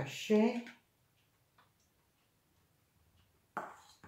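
A spoon clinks against a ceramic plate.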